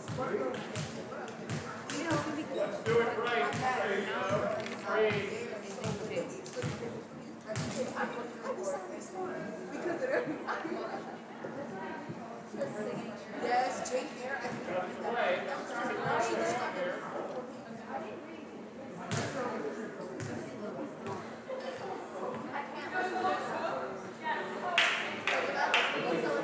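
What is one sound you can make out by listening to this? Young women chatter and call out across a large echoing gym.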